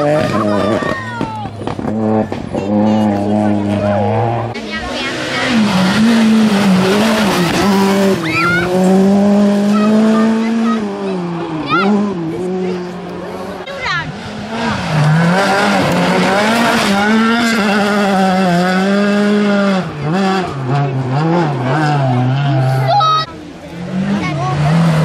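A rally car engine roars and revs hard, rising and falling as the car passes close by.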